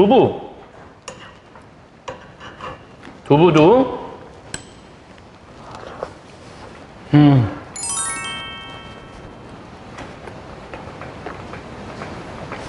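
A metal spoon clinks against a small bowl.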